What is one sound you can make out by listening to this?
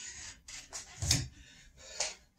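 Feet thud onto the floor as a man drops down.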